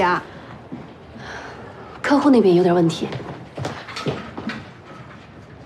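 A young woman speaks briskly nearby.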